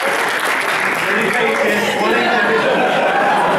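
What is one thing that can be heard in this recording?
A man speaks loudly to an audience.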